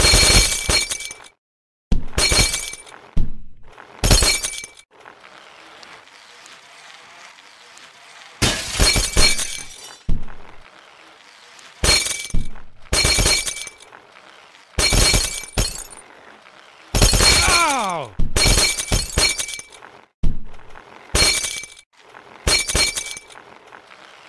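Glass bottles shatter in short, loud bursts.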